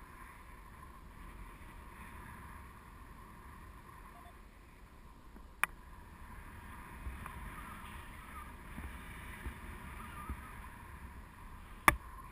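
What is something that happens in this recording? Wind rushes steadily past, outdoors high in the air.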